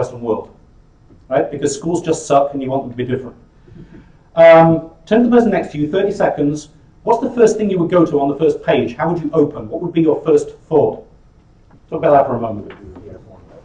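A man speaks with animation to a group in a room with a slight echo.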